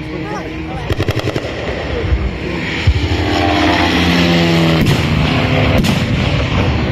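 Pyrotechnic charges bang loudly on the field.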